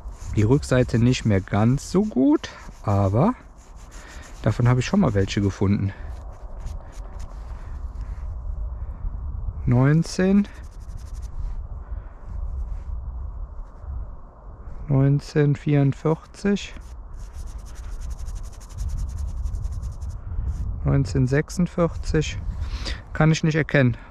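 Gloved fingers rub and crumble dry soil close by.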